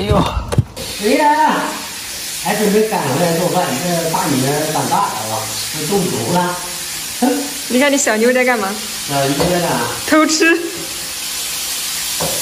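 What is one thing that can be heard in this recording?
A wok sizzles as food is stir-fried.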